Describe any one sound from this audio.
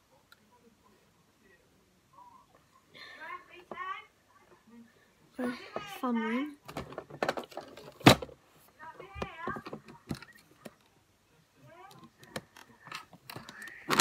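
Plastic clicks and knocks as a young girl handles small pieces.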